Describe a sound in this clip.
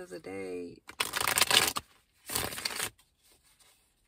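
Paper rustles in a person's hands.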